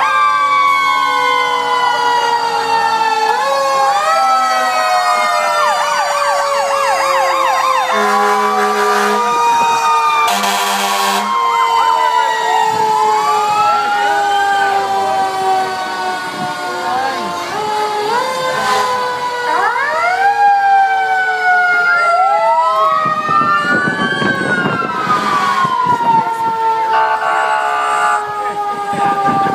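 Fire truck sirens wail loudly, rising and falling, close by.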